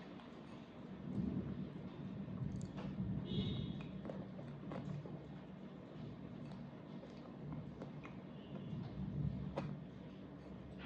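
A young woman chews soft food close to a microphone.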